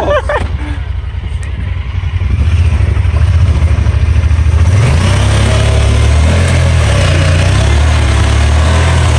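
An off-road vehicle's engine rumbles and revs.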